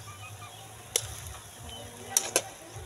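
A spoon clinks against a metal pan.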